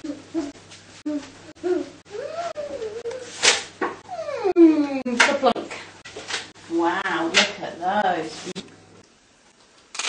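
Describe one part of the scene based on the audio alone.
A woman speaks gently and with animation close by.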